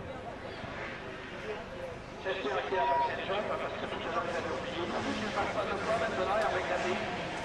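Racing car engines roar and rev loudly as cars speed past, outdoors.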